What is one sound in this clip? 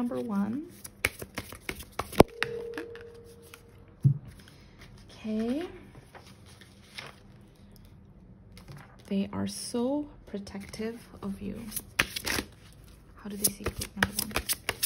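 Playing cards riffle and flick as a deck is shuffled.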